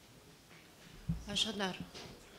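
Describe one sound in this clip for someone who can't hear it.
A woman begins speaking into a microphone.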